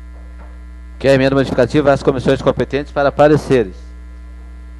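An adult man speaks briskly through a microphone.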